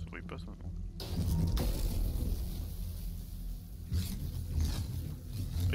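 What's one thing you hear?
Electricity crackles and bursts loudly.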